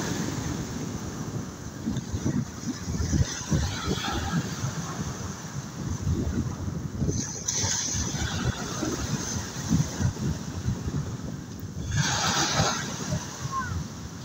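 Wind blows in gusts outdoors.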